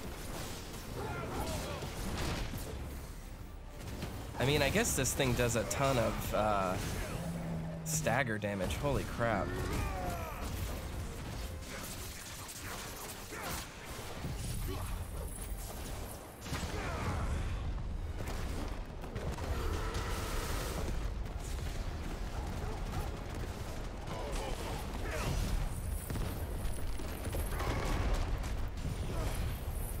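Blades clash and blasts crackle in a fierce, noisy fight.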